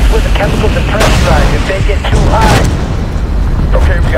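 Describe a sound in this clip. An explosion booms with a loud blast.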